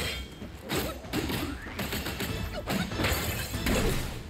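Metal weapons clash with ringing scrapes.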